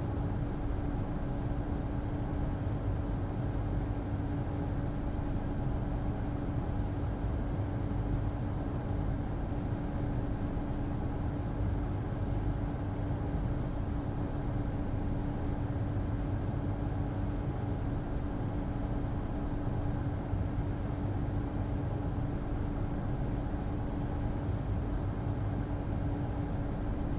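A train engine hums steadily at idle.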